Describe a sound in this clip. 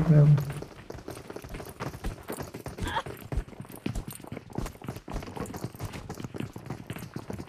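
A game character's footsteps tap quickly on a wooden floor.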